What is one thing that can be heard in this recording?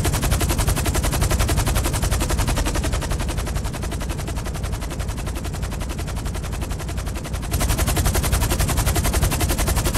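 Helicopter rotor blades thump rapidly and steadily, fading a little as the helicopter flies away, then loud and close again.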